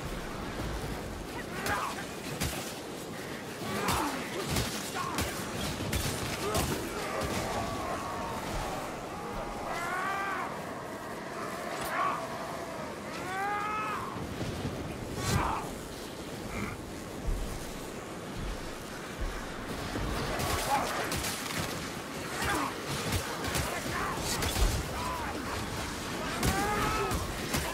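Creatures snarl and screech as they attack.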